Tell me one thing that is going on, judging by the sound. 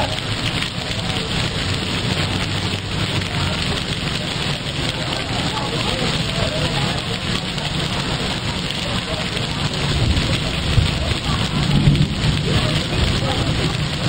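A container freight train rolls past, its steel wheels rumbling on the rails.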